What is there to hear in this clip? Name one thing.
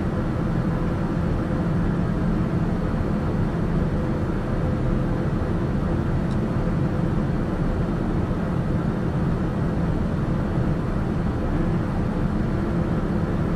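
A light aircraft's engine drones in cruise, heard from inside the cabin.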